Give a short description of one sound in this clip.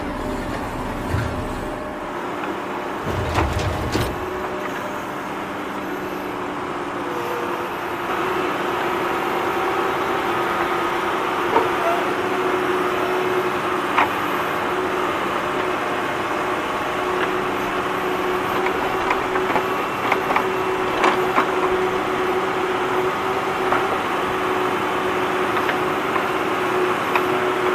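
Small electric motors whir steadily.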